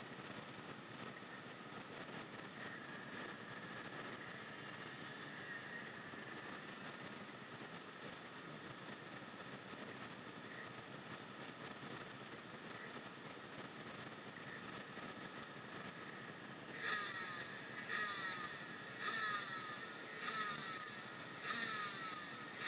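A motorcycle engine idles steadily nearby.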